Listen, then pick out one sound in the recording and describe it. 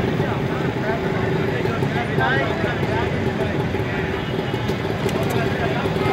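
Traffic engines rumble steadily outdoors on a busy street.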